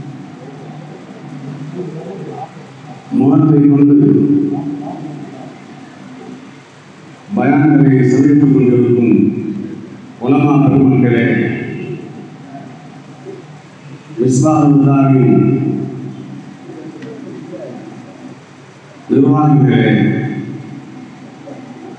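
An elderly man speaks with emphasis into a microphone, heard over loudspeakers with echo.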